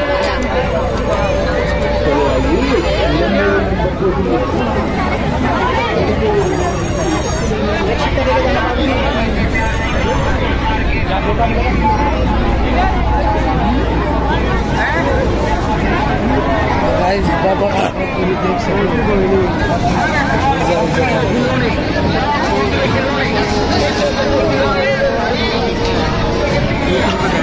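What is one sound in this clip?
A busy outdoor crowd chatters all around.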